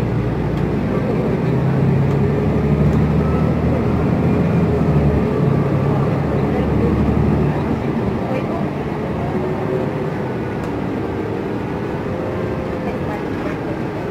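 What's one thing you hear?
Traffic passes by on the road outside.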